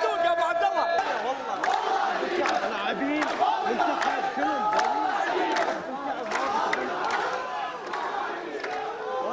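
A large crowd cheers and chants outdoors.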